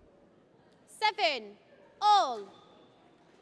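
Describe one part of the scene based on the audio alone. Shoes squeak sharply on a court floor.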